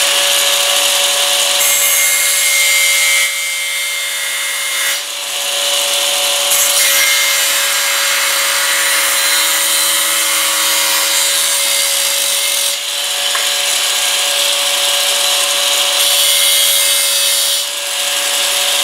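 An angle grinder whines at high speed.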